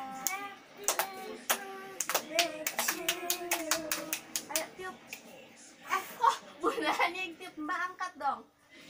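Women and children sing together up close.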